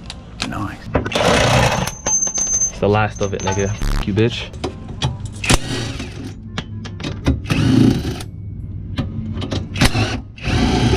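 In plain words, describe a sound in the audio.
An impact wrench whirs and rattles in short bursts.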